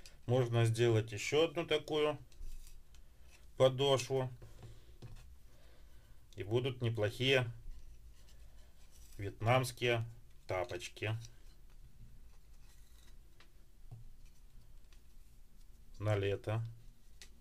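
A cord rustles softly as it is pulled through holes in a wooden sole.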